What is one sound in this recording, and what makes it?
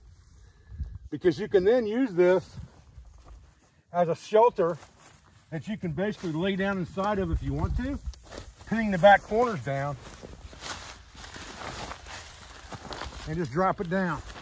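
A tarp rustles as a man handles it.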